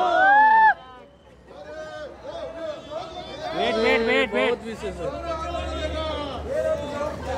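A crowd of people chatter and call out nearby.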